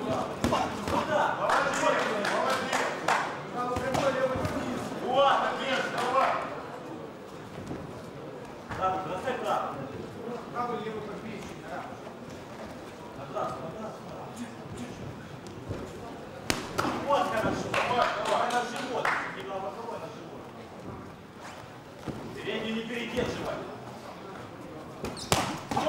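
Boxing gloves thud against a body in quick punches.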